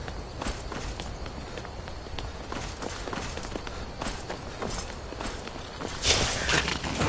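Footsteps crunch on stone and earth.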